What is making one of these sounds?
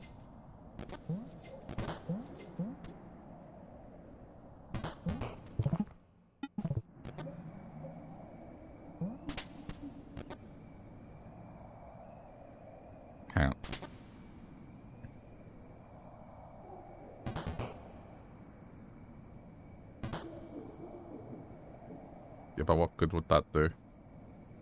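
Short soft thuds and blips sound as a small creature hops and swings between ledges.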